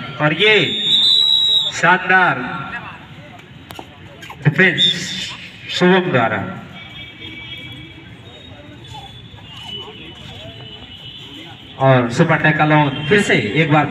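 A young man chants loudly and rapidly over and over.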